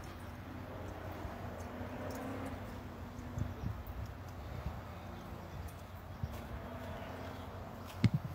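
A woman speaks calmly outdoors.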